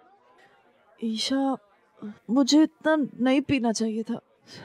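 A young woman cries out in distress nearby.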